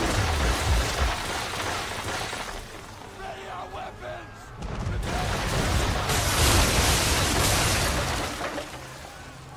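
Cannons boom and rumble in a sea battle.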